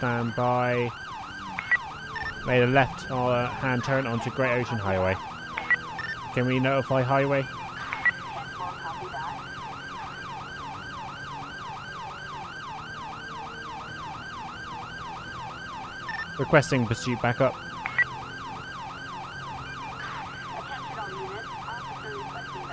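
A police siren wails rapidly and steadily.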